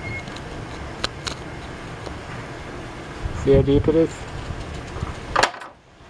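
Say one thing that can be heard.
A metal blade scrapes and taps against rusty metal.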